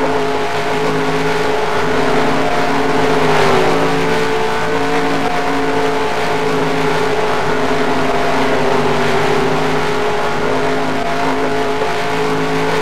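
A stock car engine drones at full throttle.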